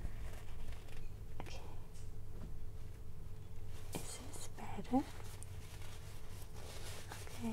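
Clothing rustles softly close to a microphone.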